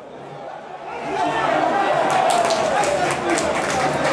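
A crowd cheers loudly in an open stadium.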